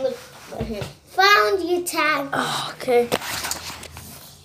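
A girl talks excitedly close by.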